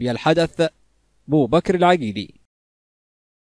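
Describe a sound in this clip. A group of young men chant loudly outdoors.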